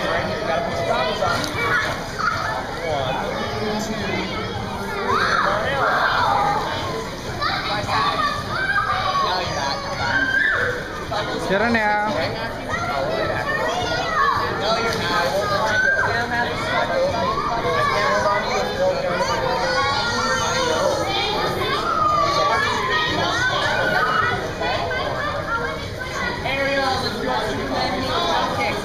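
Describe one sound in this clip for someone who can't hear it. Children chatter and call out in an echoing hall.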